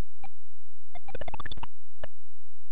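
A rapid burst of electronic beeps climbs in pitch.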